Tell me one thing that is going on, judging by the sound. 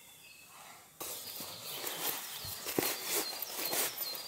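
Fabric rustles and crinkles close by.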